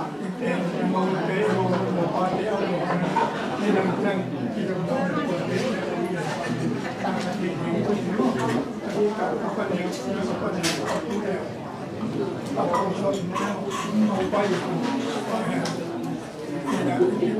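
Many women and men chatter at once nearby.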